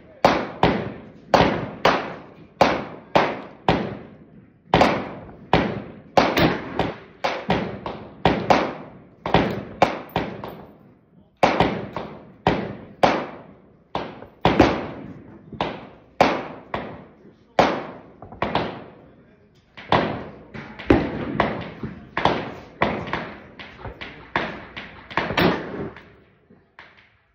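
A rifle fires shot after shot, each crack ringing out and echoing.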